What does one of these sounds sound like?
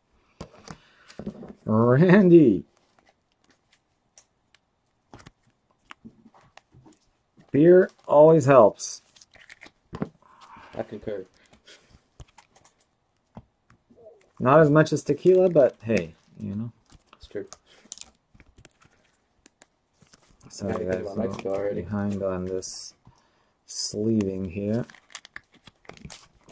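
Plastic card sleeves rustle and click as hands handle them.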